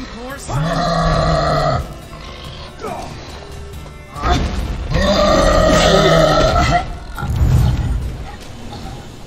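A large beast roars loudly and growls.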